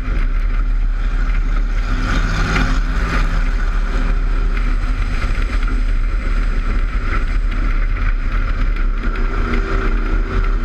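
Tyres skid and rumble over loose dirt.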